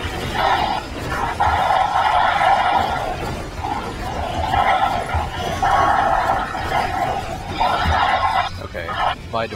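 A weapon fires rapid magic blasts with a steady buzzing whine.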